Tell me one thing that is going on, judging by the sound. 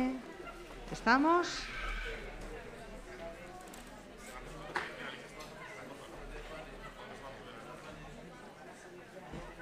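A woman speaks quietly near a microphone in a large echoing hall.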